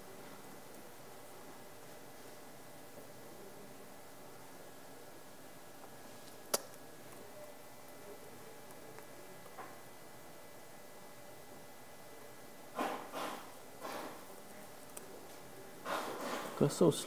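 Computer keys click as a young man types.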